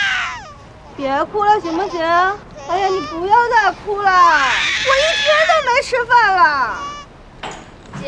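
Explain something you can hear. A woman speaks pleadingly, close by.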